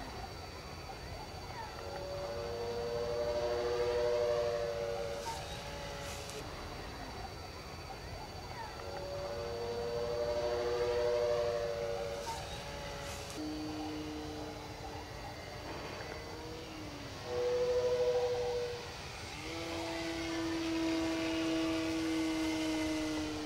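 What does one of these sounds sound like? A propeller plane's engine drones overhead, its pitch rising and falling as the plane passes.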